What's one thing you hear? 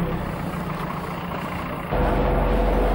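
A truck engine rumbles.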